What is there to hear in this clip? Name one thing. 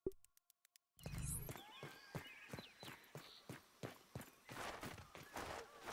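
Footsteps crunch steadily on dry ground.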